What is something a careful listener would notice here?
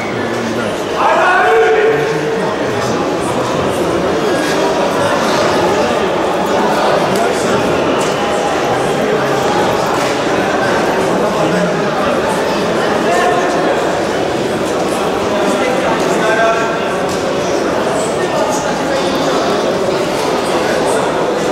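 A large crowd murmurs and chatters, echoing through a big hall.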